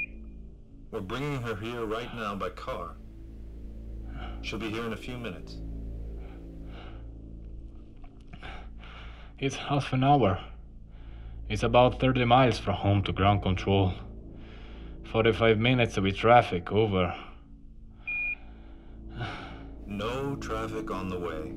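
A man speaks calmly over a crackly radio.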